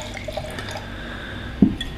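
Wine pours into a glass.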